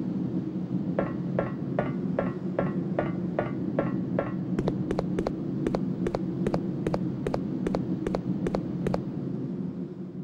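Footsteps clang quickly on a metal walkway.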